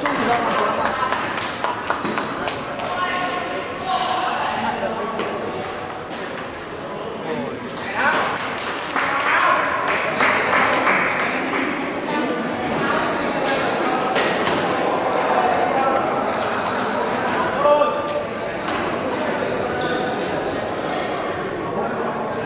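A ping pong ball clicks back and forth between paddles and the table.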